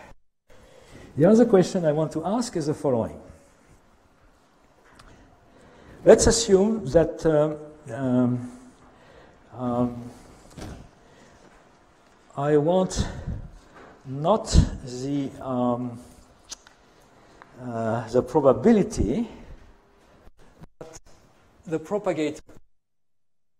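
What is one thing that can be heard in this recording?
An elderly man lectures calmly into a microphone.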